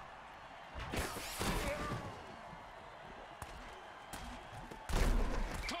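Armoured players crash into each other with heavy thuds.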